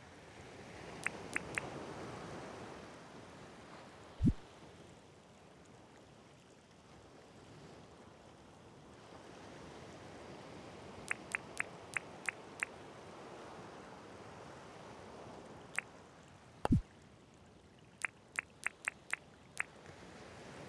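Short menu clicks tick in quick runs.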